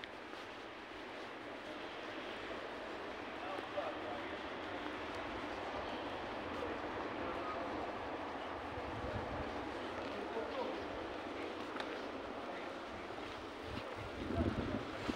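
Footsteps scuff on cobblestones close by.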